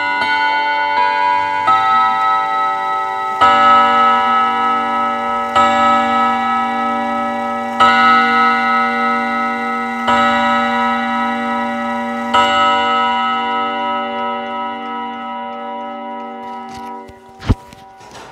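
Clock chime hammers strike metal rods in a slow melody that rings on and slowly fades.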